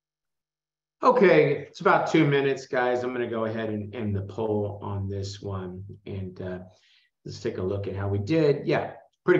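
A man explains calmly through a close microphone.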